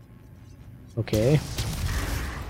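A monster growls loudly and close by.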